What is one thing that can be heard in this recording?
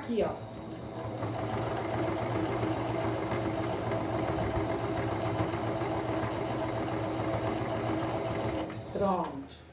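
A sewing machine hums and whirs steadily as it stitches fabric.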